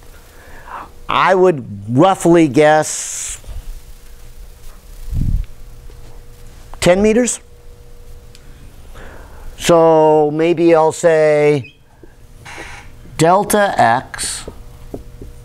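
A middle-aged man lectures with animation in a room with some echo.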